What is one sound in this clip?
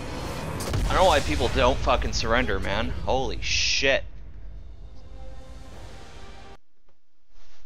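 A triumphant music sting plays as the match ends.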